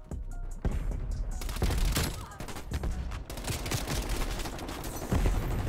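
Rapid gunfire crackles and booms.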